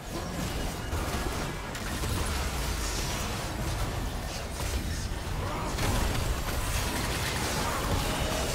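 Spell effects whoosh and crackle in a busy battle.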